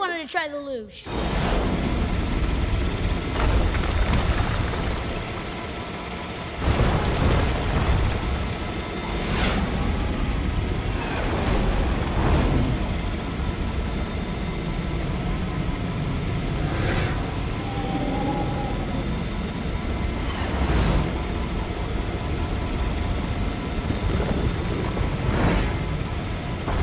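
A hovering craft's engine roars steadily.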